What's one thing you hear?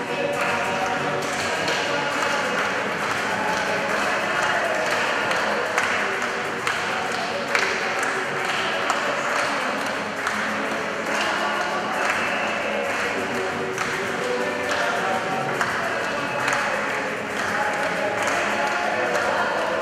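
A group of men sing together without instruments, echoing in a large hall.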